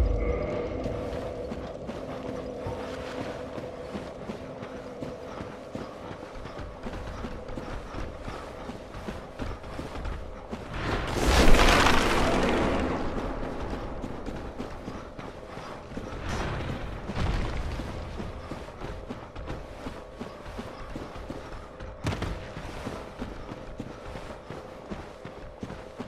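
Armoured footsteps crunch on gravel.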